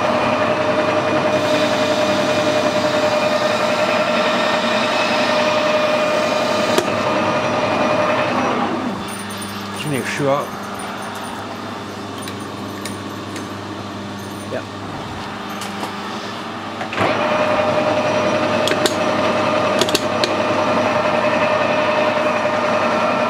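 A metal lathe runs with a steady whirring hum.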